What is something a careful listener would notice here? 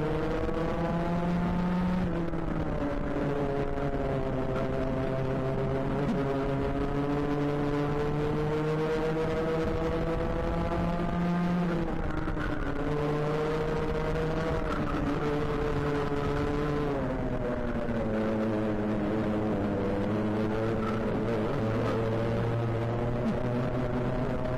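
Other kart engines drone nearby.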